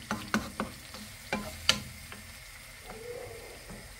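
A wooden spatula knocks and scrapes against a frying pan.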